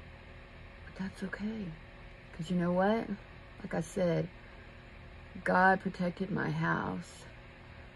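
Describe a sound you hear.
An older woman talks calmly and close by.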